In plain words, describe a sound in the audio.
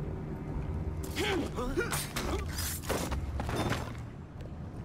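Blows land with heavy thuds in a brief scuffle.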